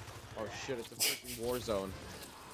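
Laser guns fire rapid zapping shots.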